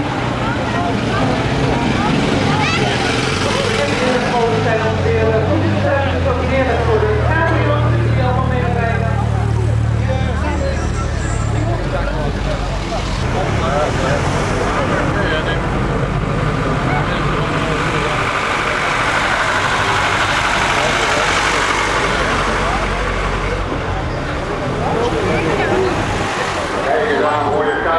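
Old car engines rumble as cars roll slowly past.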